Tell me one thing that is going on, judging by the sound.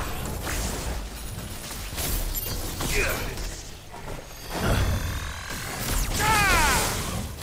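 Electric magic crackles and booms in bursts.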